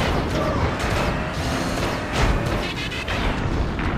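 A truck engine roars as it drives.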